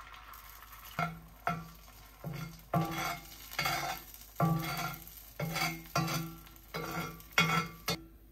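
A spatula scrapes and taps against a pan, again and again.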